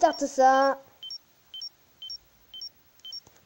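An electronic panel beeps in short, evenly spaced pulses.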